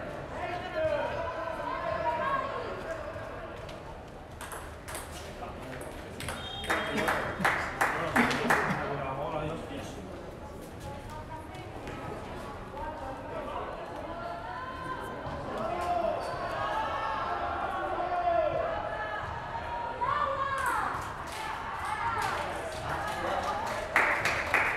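A ping-pong ball clicks back and forth off paddles and a table in an echoing hall.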